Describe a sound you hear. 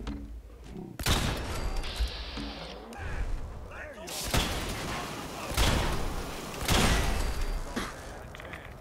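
Heavy gunshots blast in loud bursts.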